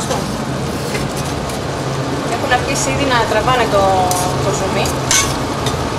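A spoon stirs pasta in a metal pot.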